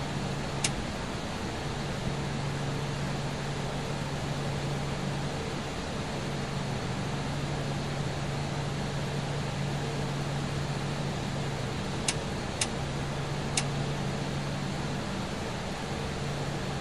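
Jet engines hum steadily as an airliner taxis.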